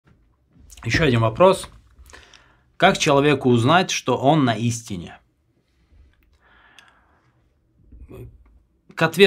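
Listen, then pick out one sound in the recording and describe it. A man speaks calmly and close into a microphone, in short phrases with pauses.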